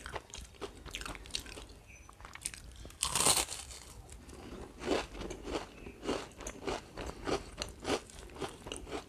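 A young woman chews food loudly and wetly close to a microphone.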